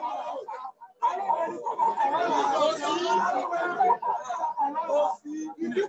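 A crowd of people chants together.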